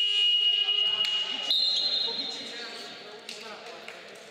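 A referee's whistle blows loudly in an echoing hall.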